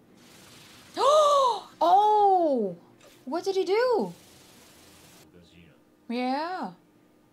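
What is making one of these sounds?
A young woman gasps and exclaims in surprise close to a microphone.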